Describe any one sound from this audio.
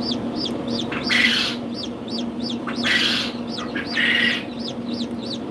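Eggs click softly against each other and a plastic tray as a hand moves them.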